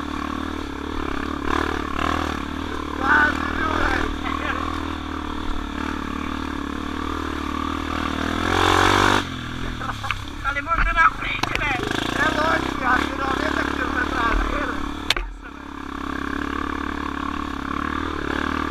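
A dirt bike engine hums steadily up close.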